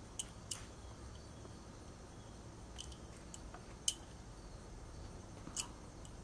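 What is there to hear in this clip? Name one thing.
Metal bangles clink lightly against each other.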